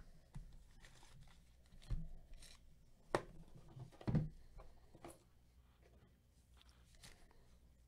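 Foil card packs rustle and tap against each other.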